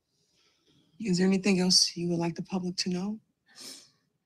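A woman speaks emotionally.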